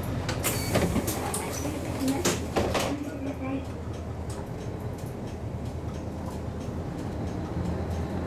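A bus rattles and creaks as it pulls away.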